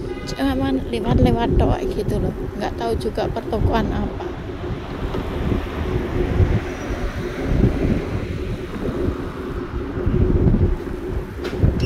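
Wind rumbles and buffets steadily while riding along outdoors.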